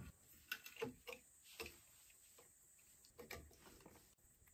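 Metal tools click and clank against pipe fittings.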